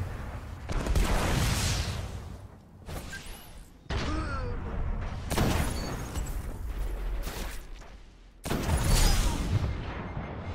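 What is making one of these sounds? A sniper rifle fires loud booming shots that echo away.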